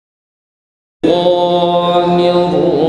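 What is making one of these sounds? A man recites in a loud, melodic voice through a microphone.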